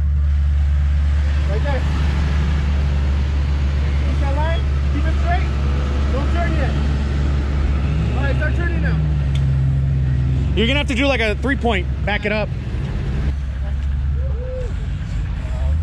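A jeep engine idles with a low steady rumble.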